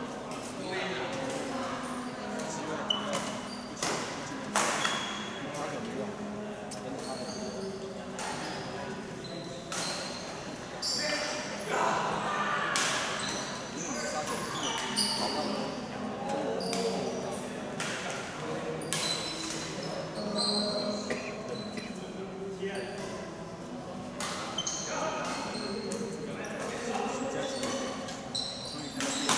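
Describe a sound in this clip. Rackets strike a shuttlecock with sharp pops, again and again.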